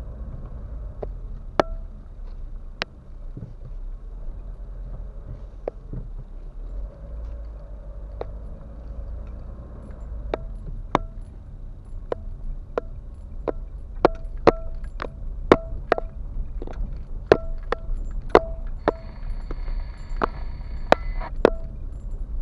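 Raindrops tap sharply on a car roof and windscreen.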